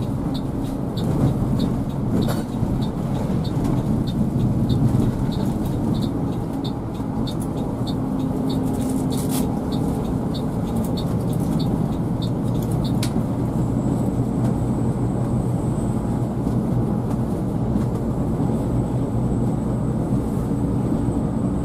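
A truck engine drones steadily, heard from inside the cab.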